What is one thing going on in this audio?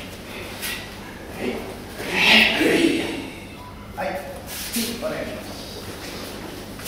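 Wooden staffs swish through the air in a large echoing hall.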